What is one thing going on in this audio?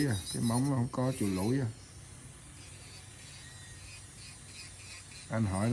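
An electric nail drill whirs steadily.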